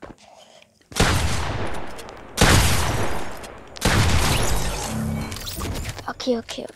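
A shotgun fires several loud blasts at close range.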